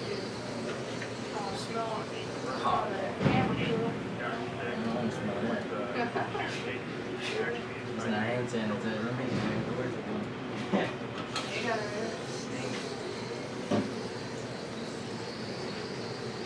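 Small objects clatter and knock on a shelf.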